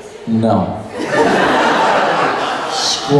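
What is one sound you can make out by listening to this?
A woman laughs loudly through a microphone.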